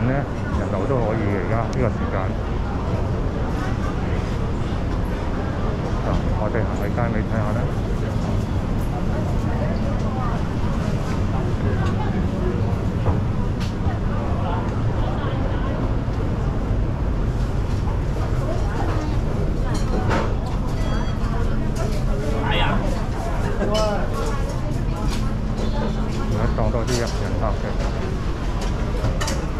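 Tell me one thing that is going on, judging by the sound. Dishes and cutlery clatter on tables.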